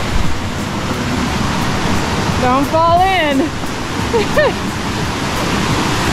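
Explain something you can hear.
A stream rushes loudly close by.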